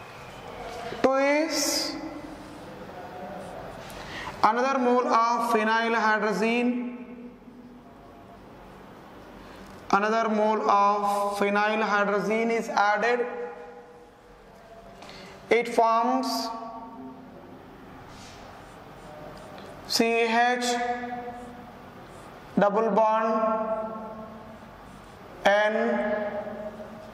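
A man speaks calmly and clearly, in short phrases with pauses.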